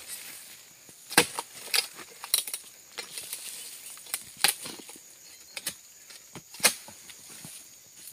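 Palm fronds rustle and scrape against a pole.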